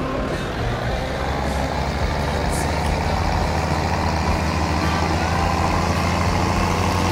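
A tractor engine revs up as the tractor pulls away.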